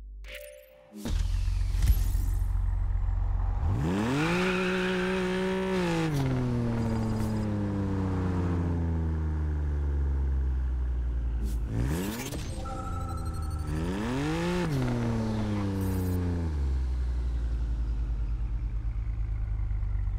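A car engine revs up and settles, rising and falling as gears change.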